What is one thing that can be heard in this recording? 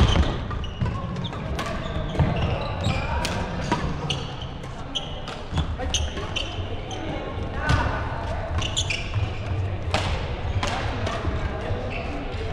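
Badminton rackets smack shuttlecocks again and again in a large echoing hall.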